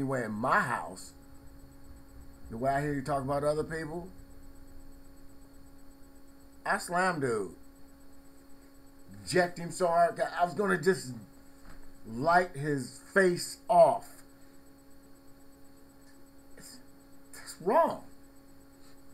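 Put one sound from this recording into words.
A middle-aged man speaks in short bursts with pauses, close to a webcam microphone.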